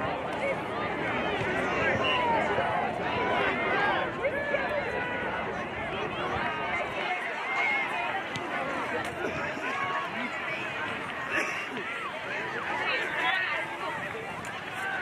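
Young players shout and call out across an open field, heard from a distance.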